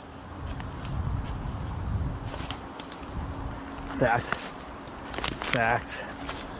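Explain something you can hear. Dry branches snap and crackle underfoot.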